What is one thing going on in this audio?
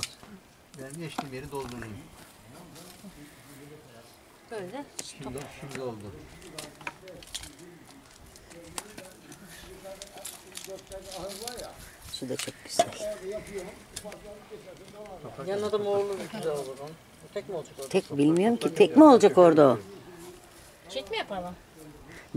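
Hands scrape and pat loose soil.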